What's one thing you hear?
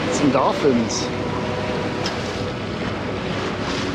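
Waves splash and rush against a sailing boat's hull.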